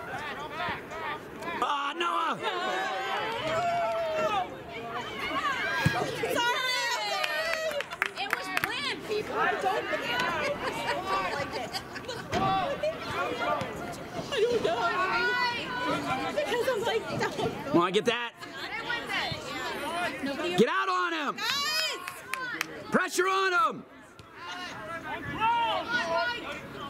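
Spectators nearby talk and cheer loudly.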